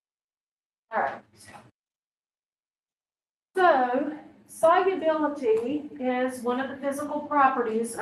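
A woman speaks with animation, heard through an online call.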